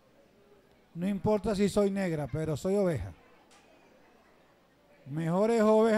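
A man preaches with animation through a microphone and loudspeakers, in a large echoing room.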